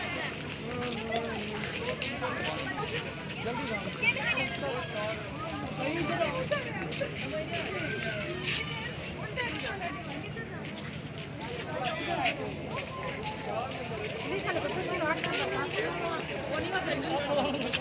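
A crowd of men and women chatter nearby, outdoors.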